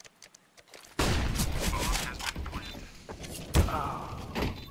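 A bomb explodes with a loud boom.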